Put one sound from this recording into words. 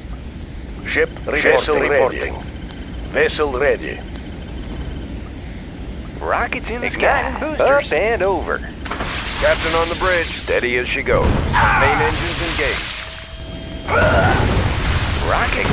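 Battle explosions boom and crackle in bursts.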